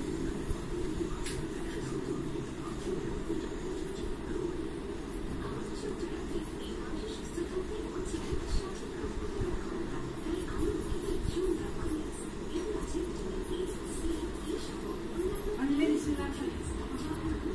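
Fingers tap lightly against a glass dish.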